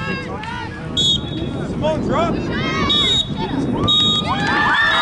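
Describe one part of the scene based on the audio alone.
A referee's whistle blows sharply a few times.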